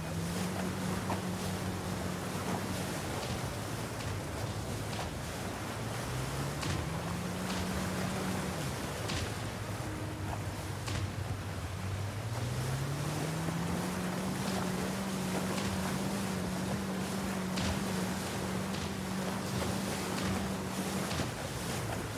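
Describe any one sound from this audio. Water hisses and splashes against a speeding boat's hull.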